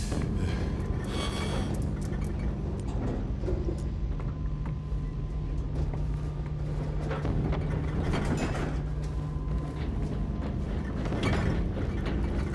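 Slow footsteps thud on a hard floor.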